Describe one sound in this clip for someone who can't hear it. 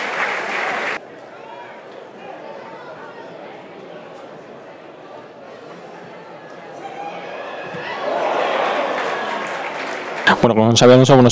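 A crowd murmurs and shouts faintly at a match.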